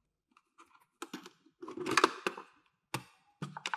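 A plastic lid clatters open.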